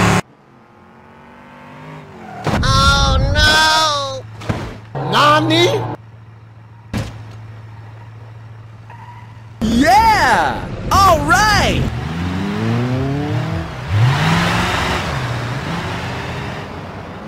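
A car engine hums as the car drives along.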